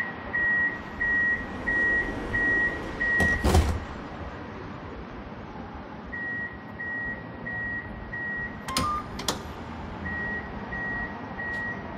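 A tram's door warning beeps repeatedly in short, even pulses.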